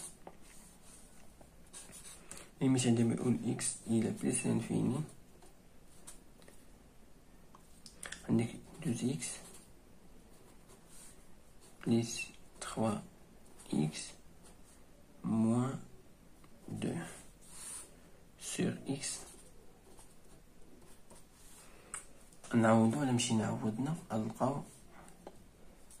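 A felt-tip marker writes on paper.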